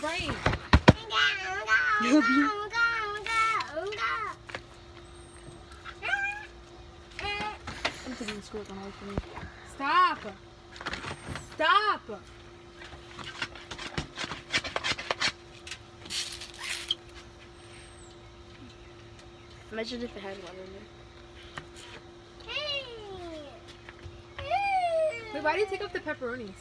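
Young girls talk and sing playfully close by.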